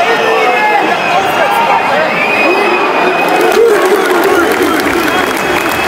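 A large stadium crowd sings and chants loudly outdoors.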